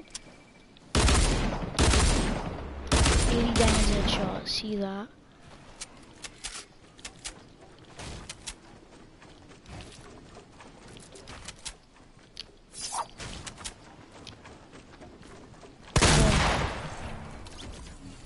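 Gunshots ring out in loud rapid bursts.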